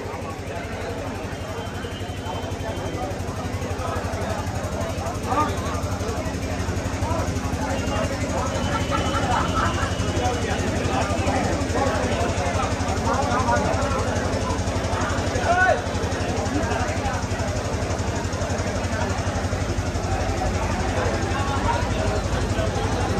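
A large crowd of men and women murmurs and chatters.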